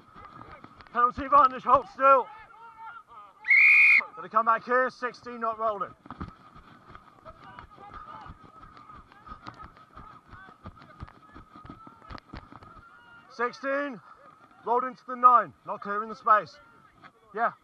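Young men shout loudly and close by, outdoors on an open field.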